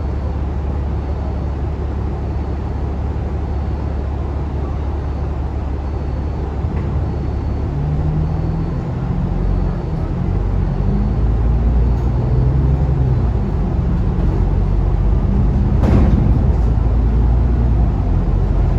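A bus engine idles with a low rumble, then revs up as the bus pulls away.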